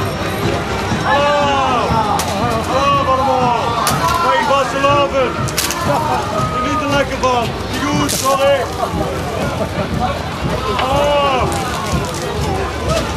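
A man shouts and sings cheerfully nearby.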